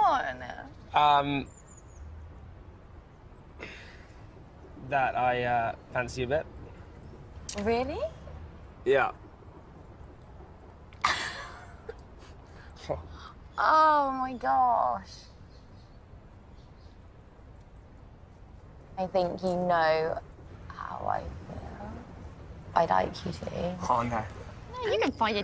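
A young man talks close by.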